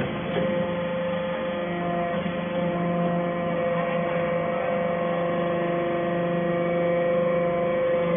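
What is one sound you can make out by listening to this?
A machine clanks as it presses metal.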